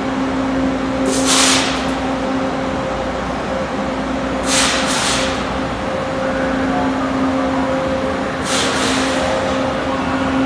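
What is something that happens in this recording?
Air brakes on a subway train hiss in sharp bursts.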